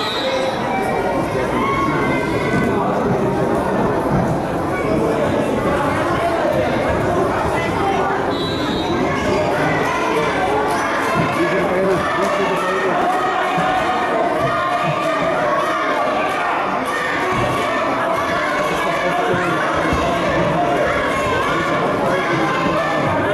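Wrestlers' bodies thud and scuffle on a mat.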